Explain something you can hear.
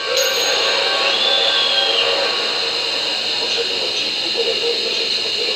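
Metal plates clink and scrape against each other.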